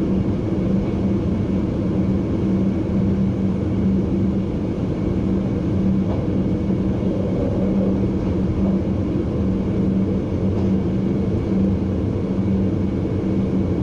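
A train rumbles steadily along the tracks, its motor humming from inside the cab.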